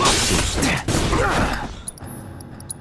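A sword clangs against metal with crackling sparks.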